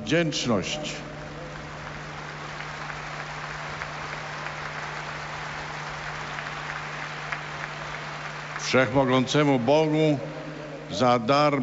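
A large crowd applauds in the distance.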